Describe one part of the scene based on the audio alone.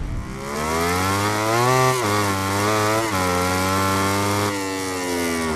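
A motorcycle engine revs high and rises in pitch through quick gear changes.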